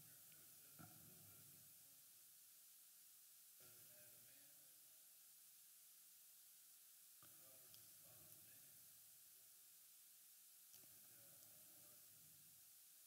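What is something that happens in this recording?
A man speaks calmly and slowly through a headset microphone, faint and with long pauses.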